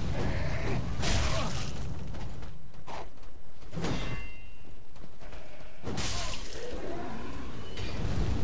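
A sword slashes and clangs against armour.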